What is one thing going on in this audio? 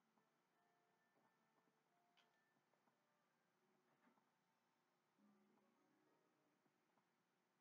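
Soft game music plays faintly from a television speaker.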